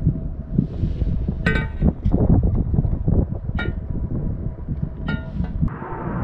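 Metal parts clink and knock as a brake backing plate is fitted onto a hub.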